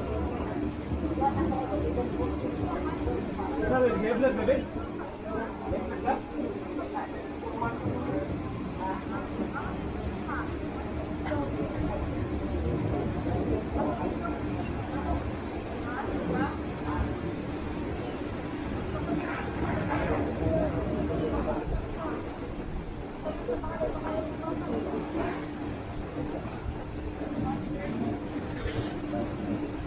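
Several men and women chatter softly nearby outdoors.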